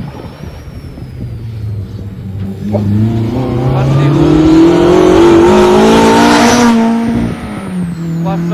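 A rally car engine roars closer, revs hard and speeds past.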